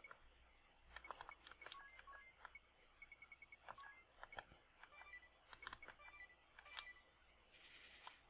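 Game menu cursor blips tick as options are chosen.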